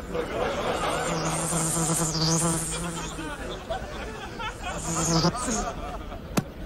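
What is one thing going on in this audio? A man makes short, high humming sounds close by.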